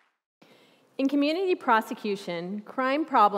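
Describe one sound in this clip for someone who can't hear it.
A young woman speaks clearly through a microphone in a hall.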